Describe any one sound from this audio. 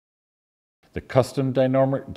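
An elderly man speaks calmly to the listener.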